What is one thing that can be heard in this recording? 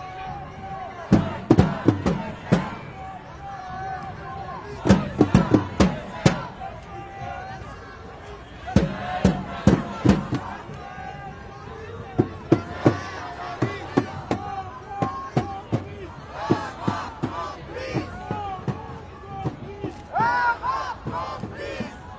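A crowd of marchers chants together loudly outdoors.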